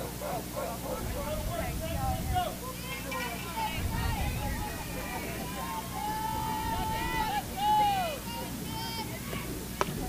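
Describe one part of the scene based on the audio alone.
Young women call out and chant from across an open field.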